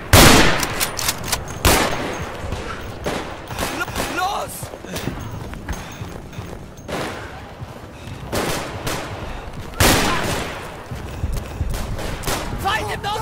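Gunshots boom one after another with a long echoing rumble.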